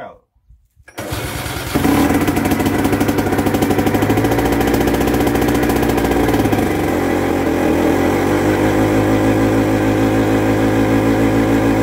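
A tractor engine starts up and runs with a loud, steady rumble.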